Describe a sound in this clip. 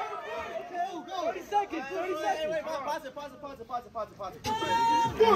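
A crowd of young people shouts and cheers nearby outdoors.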